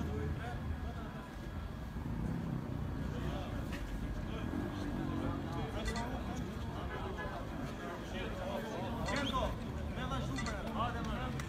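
A crowd of young men talks and murmurs close by outdoors.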